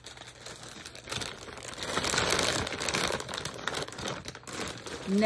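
A plastic bag crinkles and rustles close by.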